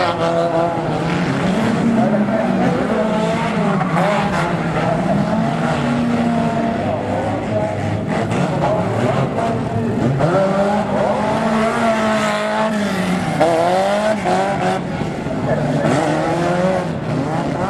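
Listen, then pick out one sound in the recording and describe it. Banger race cars crash and grind against each other.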